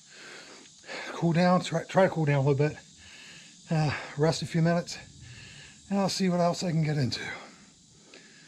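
A middle-aged man talks calmly and close by, in bursts with pauses.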